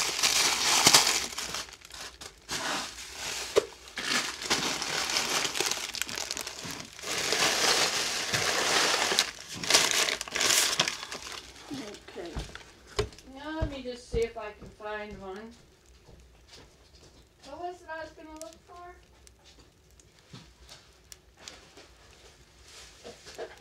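A wood fire crackles and pops softly inside a stove.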